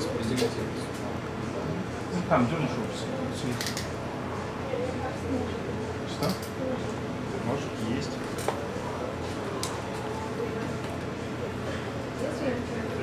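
A microphone crackles and knocks as a man handles its cable.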